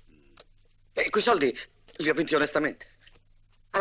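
A young man speaks pleadingly up close.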